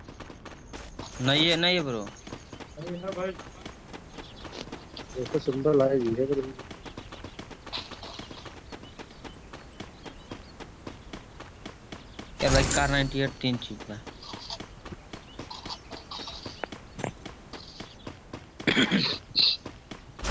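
Footsteps run quickly over grass and ground.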